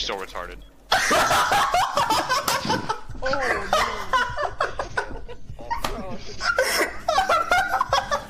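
A young man shouts and laughs loudly close to a microphone.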